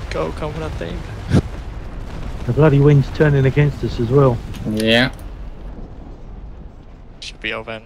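Cannons fire in deep booms.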